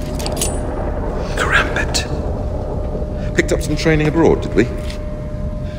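A middle-aged man speaks in a low, menacing voice close by.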